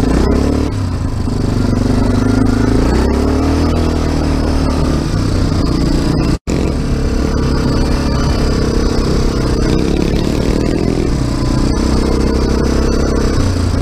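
Tyres rumble and splash over a muddy dirt track.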